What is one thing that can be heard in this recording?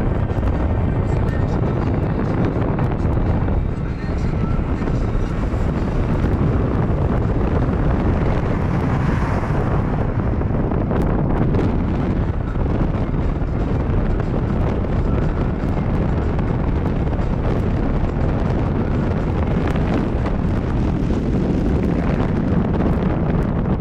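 A car engine runs while driving, heard from inside the car.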